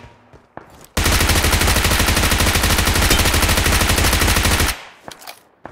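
An automatic rifle fires a rapid, sustained burst.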